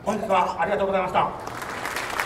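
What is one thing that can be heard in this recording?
A man speaks calmly into a microphone over a loudspeaker, in a large echoing space.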